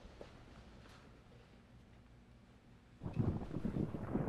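Footsteps fall softly on a hard floor.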